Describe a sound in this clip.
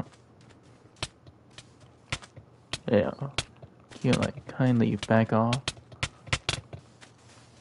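Sharp sword hits land in quick bursts.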